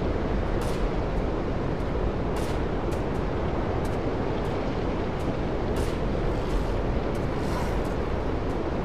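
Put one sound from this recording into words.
Wind blows steadily through trees outdoors.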